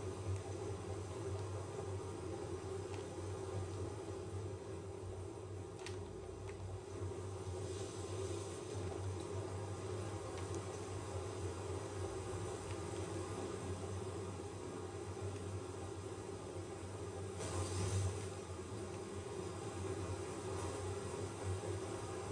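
A boat engine chugs steadily.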